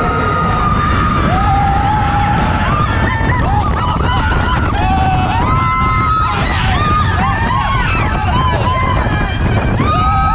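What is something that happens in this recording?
Wind rushes past loudly.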